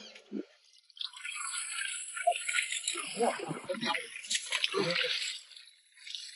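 Water splashes as a fish thrashes in a shallow pool.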